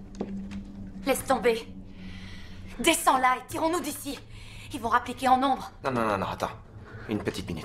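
A young woman moans and gasps loudly nearby.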